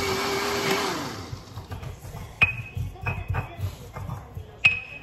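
A stone pestle grinds and knocks in a stone mortar.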